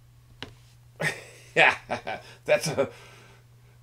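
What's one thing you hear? A middle-aged man laughs heartily.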